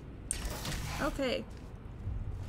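A heavy mechanical door slides open.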